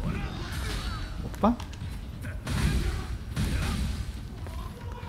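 A heavy blade whooshes through the air in quick swings.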